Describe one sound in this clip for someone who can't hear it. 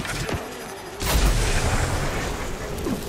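A fiery explosion roars and rumbles.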